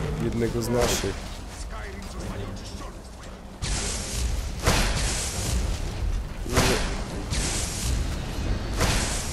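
Magic spells crackle and whoosh.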